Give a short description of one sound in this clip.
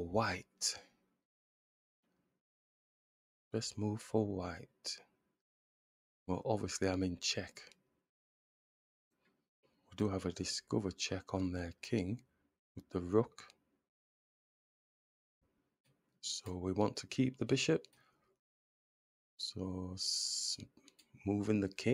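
An adult man speaks calmly into a microphone, in short phrases with pauses.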